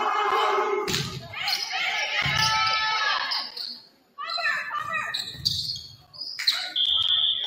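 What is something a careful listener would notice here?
A volleyball is struck with loud smacks.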